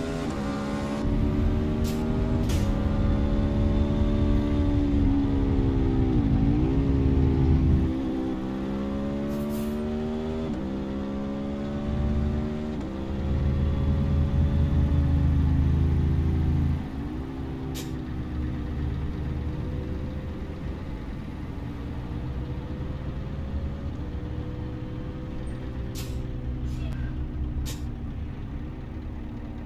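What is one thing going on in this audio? A truck engine hums and rises and falls in pitch as gears change.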